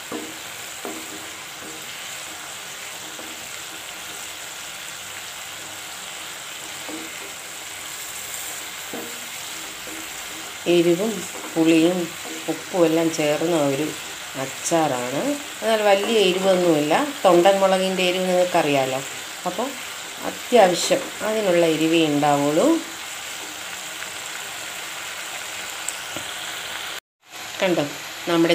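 Oil sizzles in a pan.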